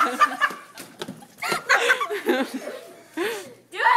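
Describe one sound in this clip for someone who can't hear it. Footsteps scuffle on a hard floor.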